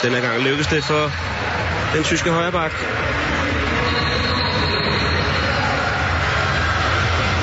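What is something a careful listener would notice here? A large crowd cheers and roars in a big echoing hall.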